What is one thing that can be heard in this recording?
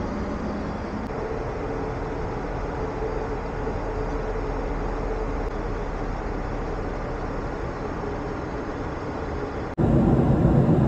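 A steady aircraft cabin hum drones.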